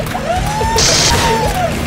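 A rifle fires rapid shots.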